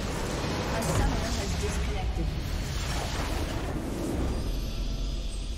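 A loud game explosion booms and crackles.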